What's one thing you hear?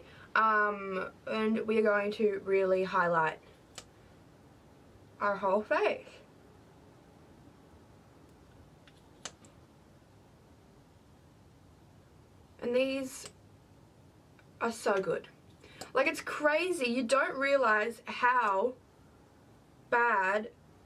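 A young woman talks calmly and closely, in short bursts with pauses.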